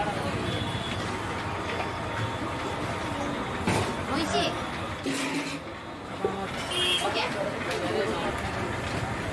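A woman sips a drink.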